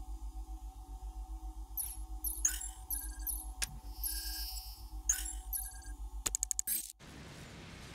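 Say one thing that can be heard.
Short electronic blips and beeps chime rapidly.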